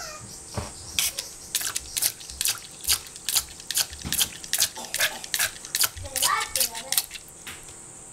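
A toy water gun sprays water in quick short bursts into a bowl.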